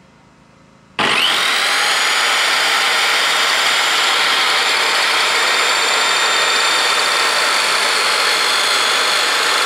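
A power saw motor starts with a sudden whine and runs loudly and steadily.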